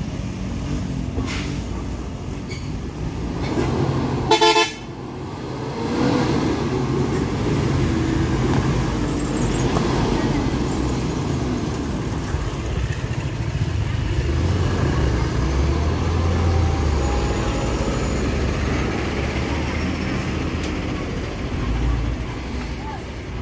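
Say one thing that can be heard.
Tyres crunch on a rough dirt road.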